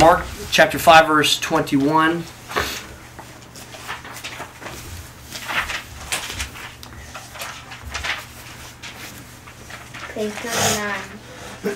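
A man types on a laptop keyboard.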